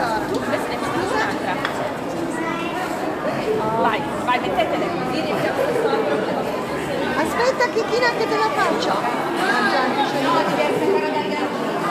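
A woman talks to children nearby.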